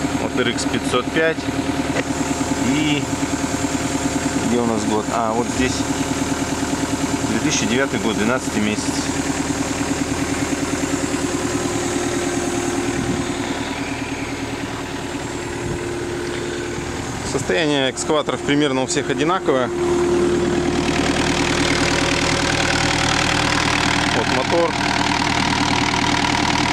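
A diesel engine idles with a steady rumble.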